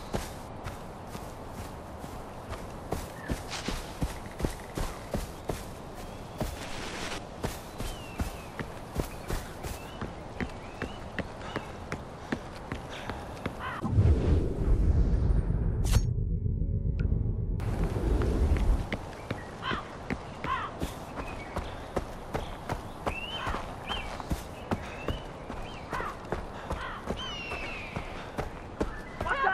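Footsteps crunch steadily through grass and over a dirt path.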